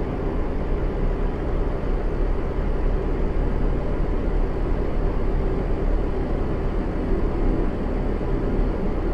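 Tyres roll on the road.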